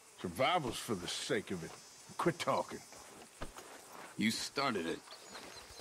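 A man speaks gruffly up close.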